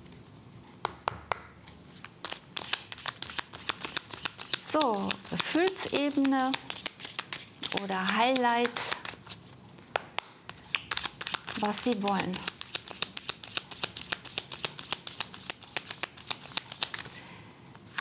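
Playing cards are shuffled with quick rapid flicks.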